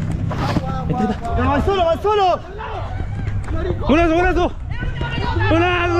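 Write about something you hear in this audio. Men shout to each other across an outdoor pitch.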